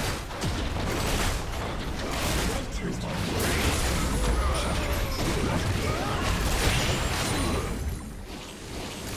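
Fantasy battle effects crackle, whoosh and thump in quick bursts.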